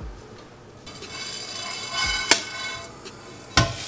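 Grains pour and rattle into a metal pot.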